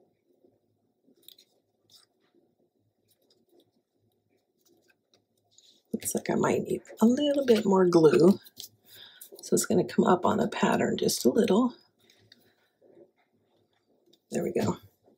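Paper rustles softly as hands press and smooth it.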